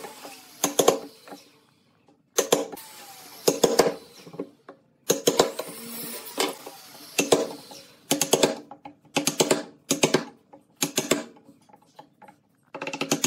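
A wooden mallet strikes a chisel cutting into wood.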